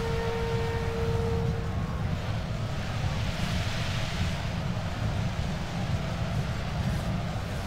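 A large army marches with a low, steady rumble of footsteps.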